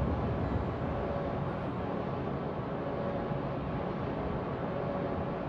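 Sea waves wash steadily around a moving ship.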